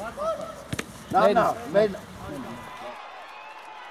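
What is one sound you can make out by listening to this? Young players shout across an open outdoor pitch.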